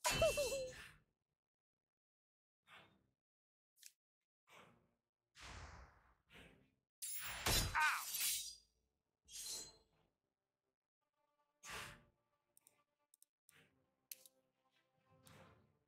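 Game sound effects chime and whoosh in short bursts.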